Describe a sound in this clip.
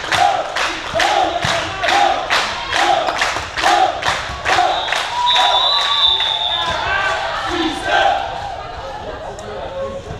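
Sports shoes squeak on a hard hall floor.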